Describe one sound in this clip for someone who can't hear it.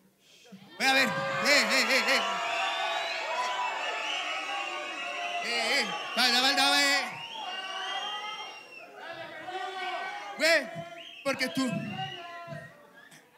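A man raps loudly into a microphone over a loudspeaker, in a large echoing hall.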